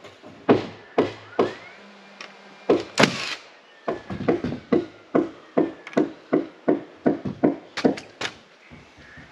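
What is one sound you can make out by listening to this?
Hammer blows knock sharply on wood in a quick steady rhythm.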